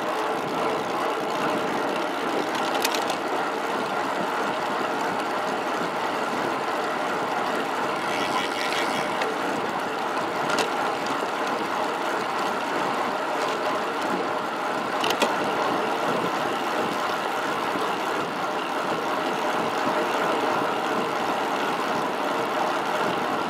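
Bicycle tyres hum on smooth asphalt.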